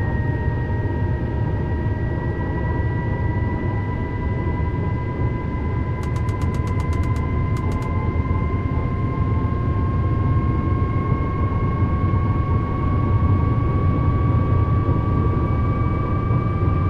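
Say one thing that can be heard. Train wheels rumble steadily over the rails.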